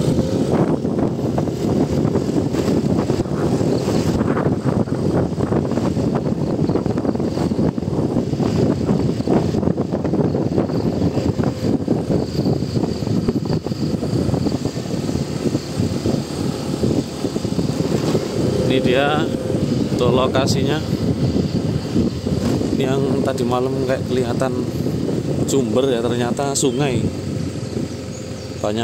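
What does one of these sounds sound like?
Wind rushes loudly past while riding.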